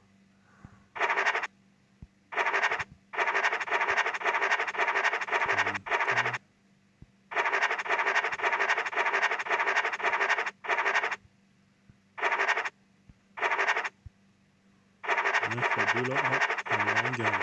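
A scratching sound effect rasps in short bursts.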